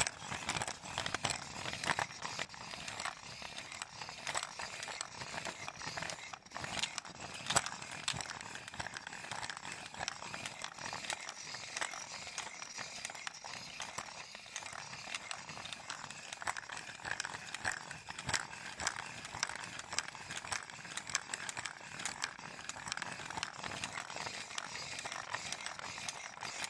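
Fingers flutter and rustle softly, very close by.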